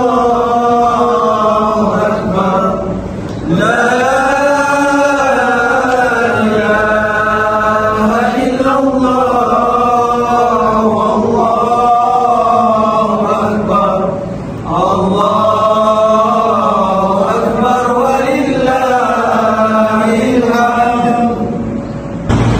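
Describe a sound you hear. A group of men chant together in unison, loud and close, in an echoing hall.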